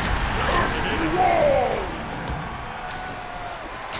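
Magical spell effects whoosh and swirl in a game fight.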